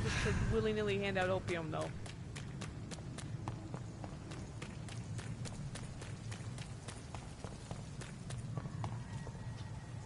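Quick footsteps run on a hard street.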